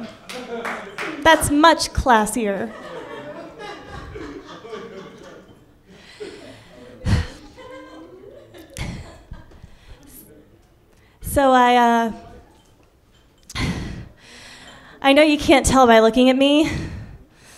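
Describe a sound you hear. A young woman speaks with animation into a microphone, heard through a loudspeaker.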